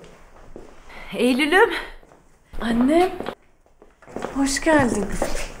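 A woman speaks warmly and brightly.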